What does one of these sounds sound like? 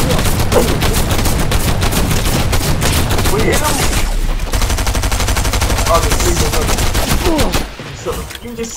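Video game gunfire and explosions rattle loudly and rapidly.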